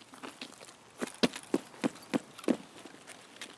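Boots thump on hard ground in quick steps.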